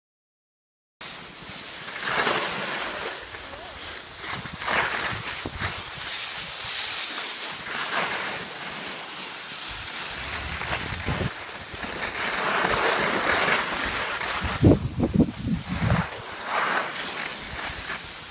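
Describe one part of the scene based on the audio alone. Skis scrape and hiss over hard snow.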